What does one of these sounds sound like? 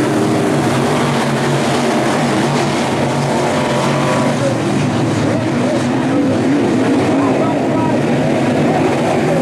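Race car engines roar loudly and steadily as a pack of cars speeds around a track outdoors.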